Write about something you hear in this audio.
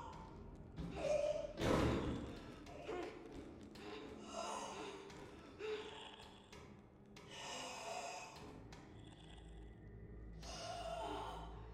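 A creature snarls and growls.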